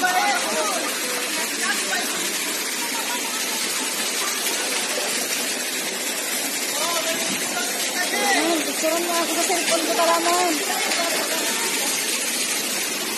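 Water rushes and splashes steadily over rocks.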